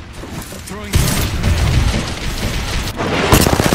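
A grenade explodes with a loud blast.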